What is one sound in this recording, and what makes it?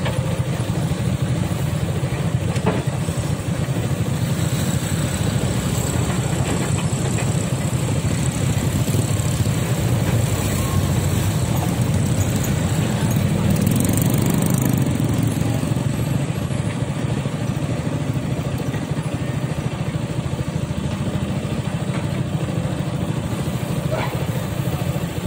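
Diesel engines of excavators rumble steadily at a distance.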